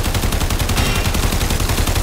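Energy blasts burst with a crackling explosion.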